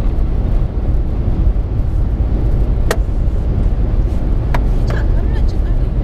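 A car's engine and tyres rumble steadily inside the car on a highway.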